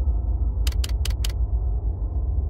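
Short clicks sound in quick succession as menu items are selected.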